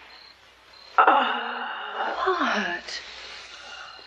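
A young woman cries out in fright.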